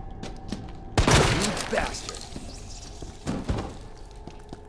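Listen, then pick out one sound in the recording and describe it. A gunshot rings out sharply.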